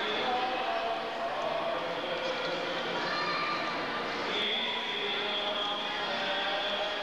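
A crowd of people murmurs in a large echoing room.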